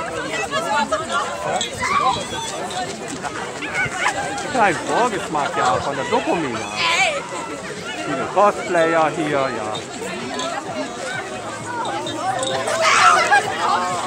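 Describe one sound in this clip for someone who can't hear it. A crowd of men and women chatter and call out close by, outdoors.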